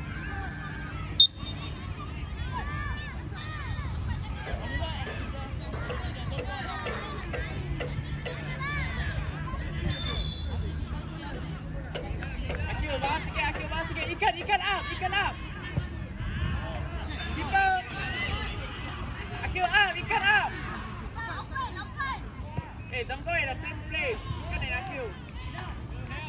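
Young children shout and call out excitedly outdoors.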